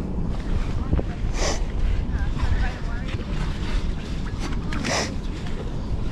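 A shovel digs into wet sand.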